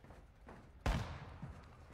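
A gunshot cracks once, loud and sharp.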